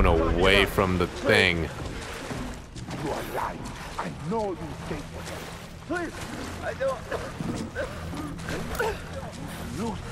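A man pleads weakly in a strained voice.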